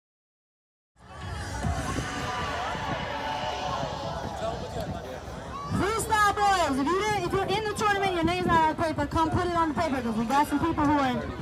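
People chatter nearby outdoors.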